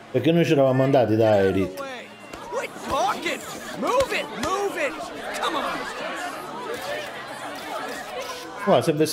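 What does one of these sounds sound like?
A crowd chatters and cheers.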